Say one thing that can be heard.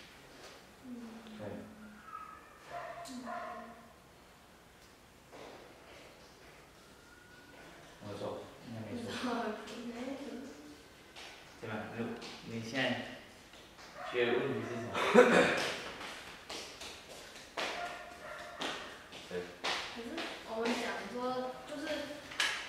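A middle-aged man speaks calmly, in a room with some echo.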